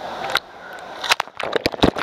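A small child splashes water while jumping into a pool.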